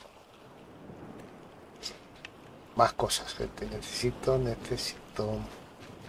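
Small waves lap gently on a shore.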